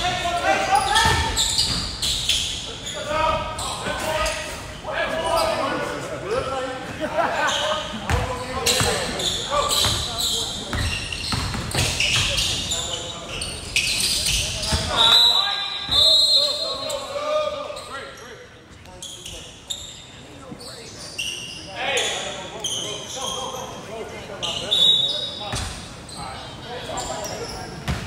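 Young players shout to each other in an echoing gym.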